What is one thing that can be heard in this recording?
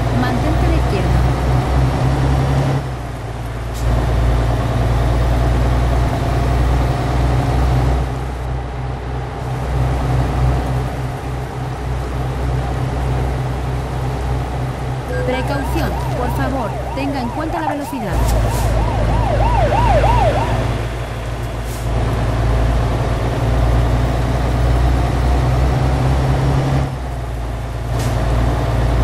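A truck engine drones steadily on a highway.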